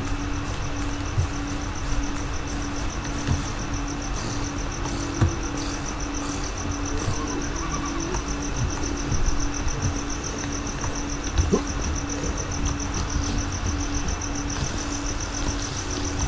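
Footsteps thud steadily on hard ground and wooden floors.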